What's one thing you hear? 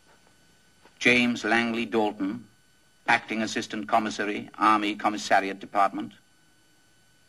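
A man speaks loudly and firmly, close by.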